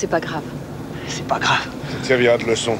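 A young man speaks, close by.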